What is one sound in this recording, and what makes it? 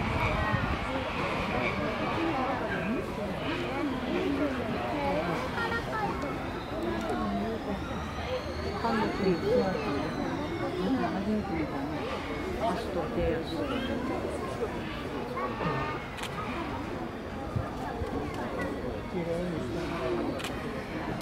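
A man calls out commands to an elephant from a short distance away.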